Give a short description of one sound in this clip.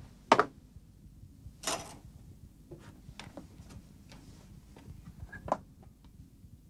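A window frame knocks and clicks as a man climbs out.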